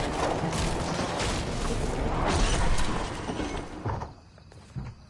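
A car engine roars as a vehicle drives fast.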